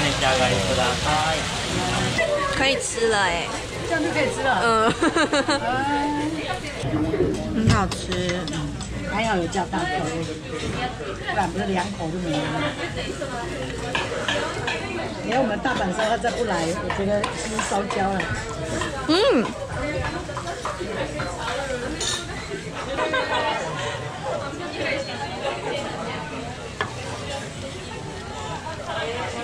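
A young woman chats nearby with animation.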